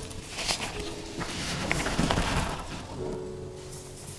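Paper rustles and crackles as a sheet is peeled away.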